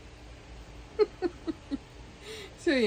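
A woman laughs softly in short bursts close by.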